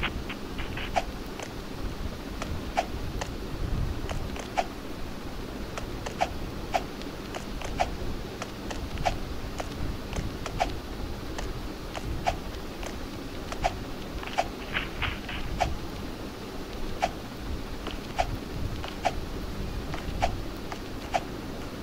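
Light footsteps tap at an even pace.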